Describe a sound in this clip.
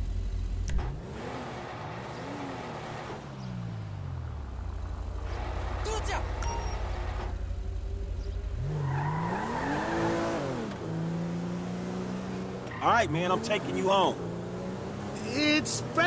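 A car engine revs and rises in pitch as the car pulls away.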